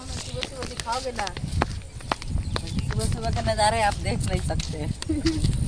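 Footsteps crunch on a dry dirt path.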